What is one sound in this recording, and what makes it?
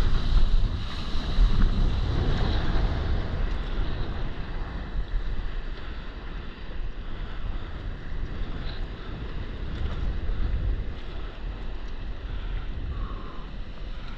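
Wind rushes past a microphone outdoors.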